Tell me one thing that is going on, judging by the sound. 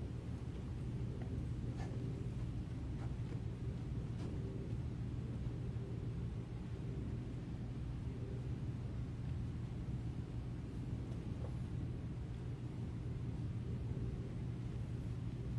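Footsteps tread slowly on a hard floor in a large, echoing hall.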